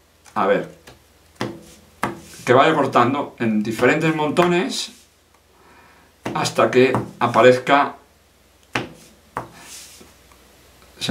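Playing cards slide and tap softly on a cloth mat.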